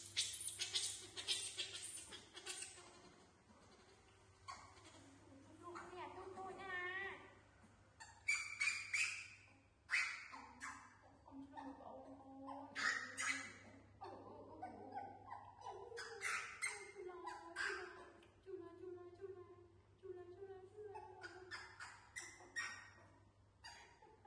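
Young monkeys squeal and chirp.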